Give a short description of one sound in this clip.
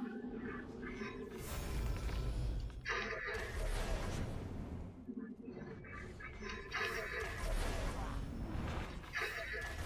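A bowstring creaks as an arrow is drawn and loosed.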